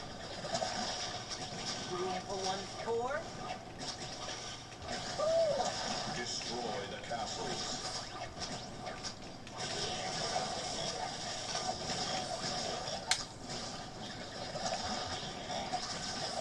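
Video game effects pop and burst.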